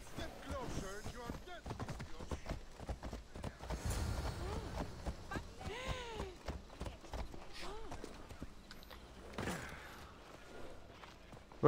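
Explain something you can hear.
Horse hooves clop steadily on a dirt path.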